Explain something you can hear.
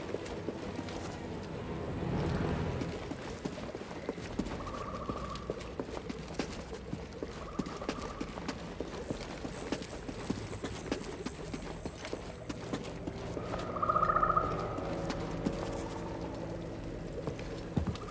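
Footsteps tap on stone as a person walks.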